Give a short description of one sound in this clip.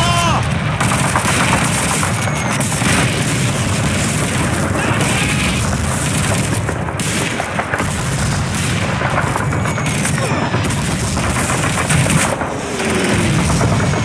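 Gunfire crackles and pops steadily all around.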